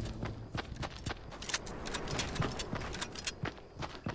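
A gun fires shots.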